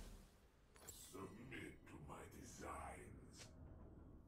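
A young man speaks casually and close into a microphone.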